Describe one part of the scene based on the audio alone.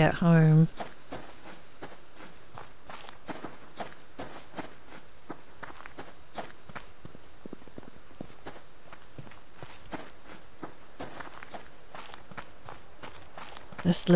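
Footsteps crunch steadily through grass and dirt.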